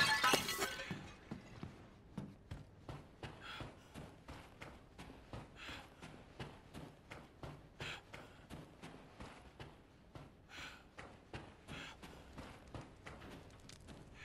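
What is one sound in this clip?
Footsteps thud slowly and steadily on a wooden floor.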